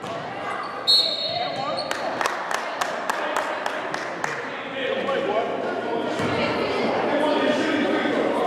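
Young players call out and shout in an echoing gym.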